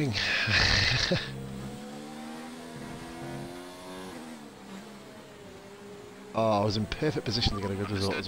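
A racing car engine whines at high revs, rising and falling as it shifts gears.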